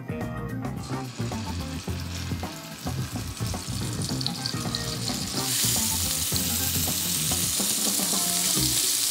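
Meat sizzles in hot oil in a pan.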